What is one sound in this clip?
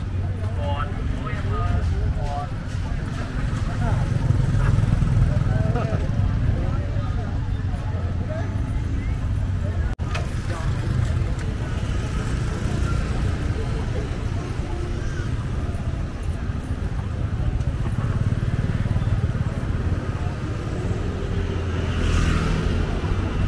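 Motorbike engines hum and putter past on a busy street.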